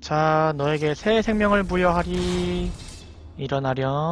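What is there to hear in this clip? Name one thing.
A magic spell crackles and buzzes.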